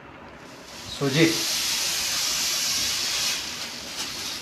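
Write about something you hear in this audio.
Flour pours from a plastic bag into a metal pot with a soft hiss.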